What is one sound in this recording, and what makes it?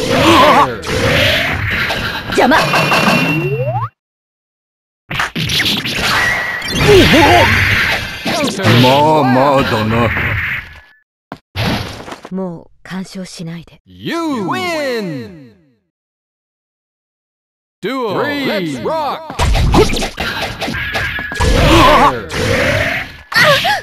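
Punches and kicks land with sharp smacks and bursts.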